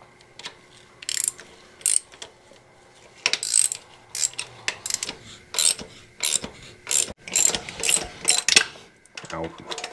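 A hand ratchet clicks in quick bursts as it turns a bolt.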